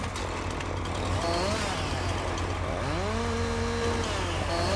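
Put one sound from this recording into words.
A chainsaw engine idles and revs up and down.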